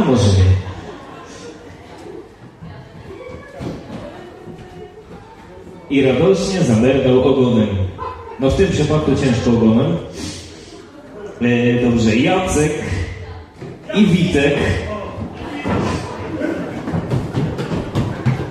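A crowd of guests chatters at tables in a large room.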